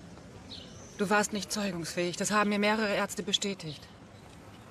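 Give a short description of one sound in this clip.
A woman speaks close by, calmly.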